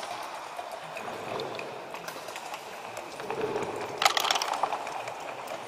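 Backgammon checkers click and clack.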